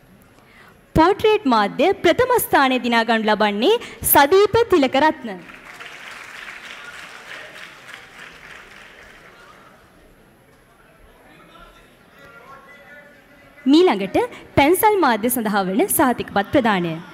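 A woman announces through a microphone in an echoing hall.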